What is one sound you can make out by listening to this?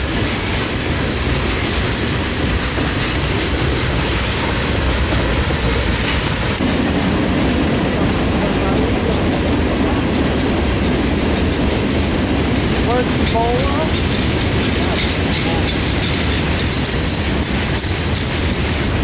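A train rumbles steadily past on nearby tracks.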